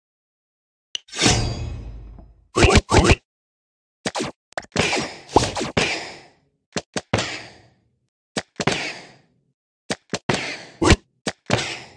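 Game hit and blast effects burst out again and again.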